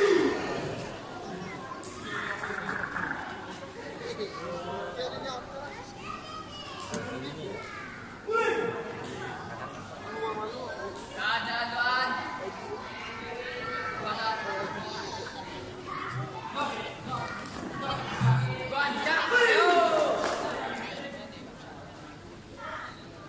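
Voices of a crowd of spectators chatter and call out in a large echoing hall.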